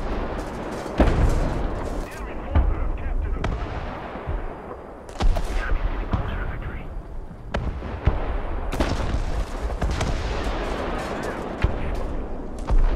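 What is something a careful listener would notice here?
Loud explosions boom nearby.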